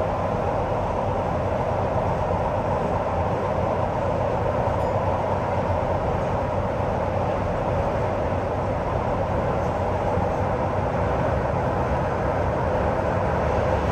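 A train rumbles steadily through an echoing tunnel.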